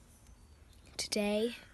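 A young girl speaks up close.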